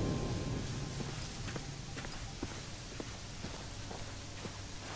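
Footsteps tap on pavement at a steady walking pace.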